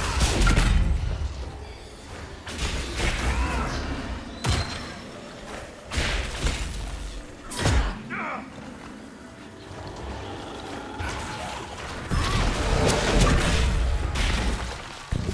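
Weapons clash and strike in combat.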